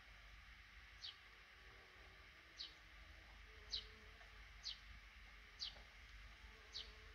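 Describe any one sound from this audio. Baby birds in a nest give short, high, thin peeps at a steady, even pace.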